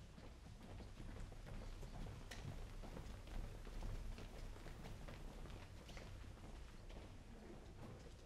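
Footsteps shuffle and tap across a stage.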